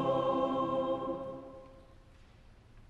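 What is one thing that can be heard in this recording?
A choir sings a final chord that rings out in a large echoing hall and fades.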